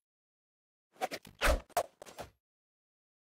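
A knife swishes through the air in quick slashes.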